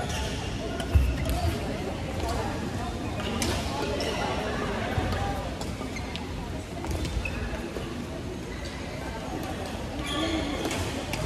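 Many people chatter in the background of a large echoing hall.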